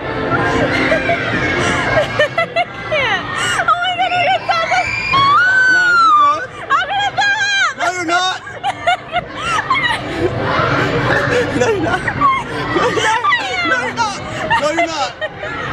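A young man talks and laughs with animation close by.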